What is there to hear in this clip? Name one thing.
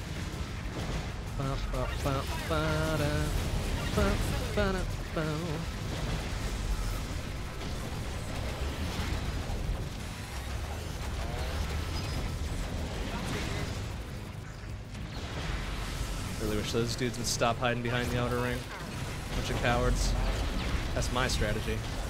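Video game gunfire and explosions crackle steadily.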